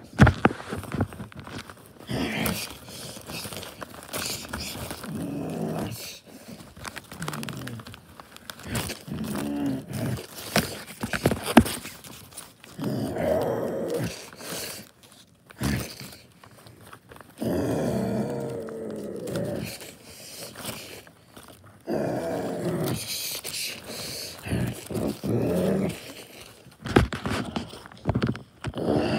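Paper crinkles and rustles as a paper toy is handled close by.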